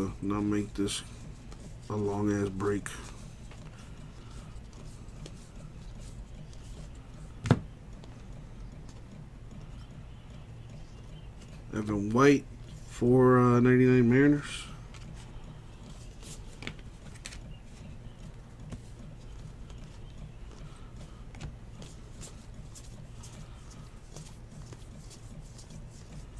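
Trading cards rustle and slide softly as hands flip through a stack.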